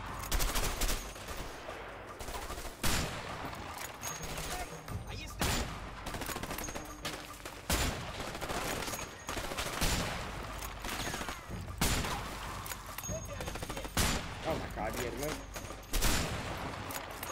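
Gunshots ring out loudly every two seconds or so.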